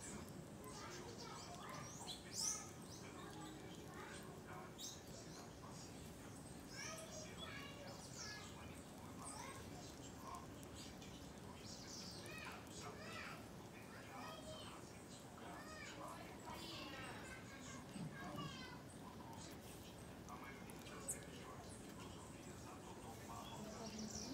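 Parakeets chirp and squawk in short bursts.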